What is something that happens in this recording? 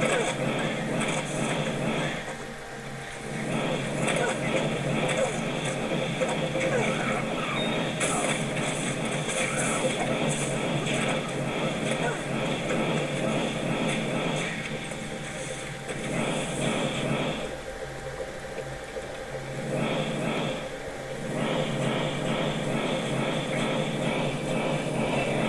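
Fiery spells burst and crackle in quick succession.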